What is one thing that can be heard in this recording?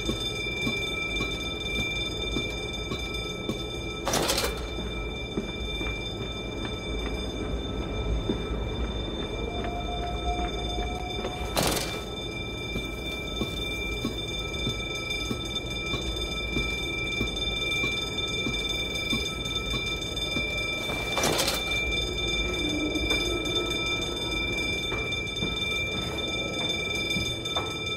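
Footsteps tread on a metal grating floor.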